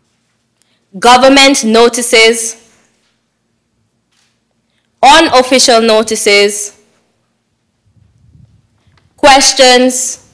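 A woman speaks clearly into a microphone in short phrases, with pauses between them.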